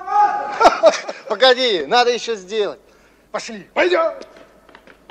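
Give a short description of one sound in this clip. A young man laughs and talks cheerfully nearby.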